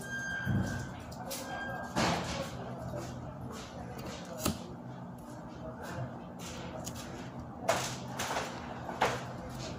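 Paper rustles and scrapes as it is folded and pressed on a table.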